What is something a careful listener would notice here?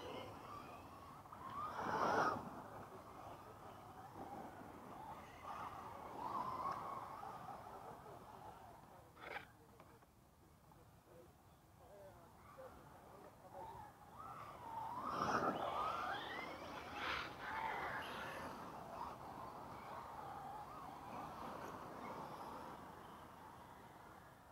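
Small electric motors whine as remote-control cars race over dirt.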